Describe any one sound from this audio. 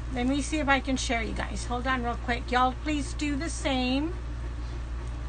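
A middle-aged woman talks close to a microphone.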